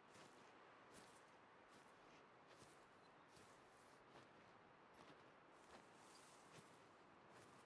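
Footsteps swish steadily through tall dry grass.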